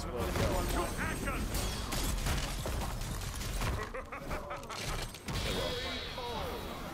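Fighting game hits land in rapid, punchy bursts.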